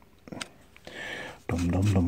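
A screwdriver scrapes against metal.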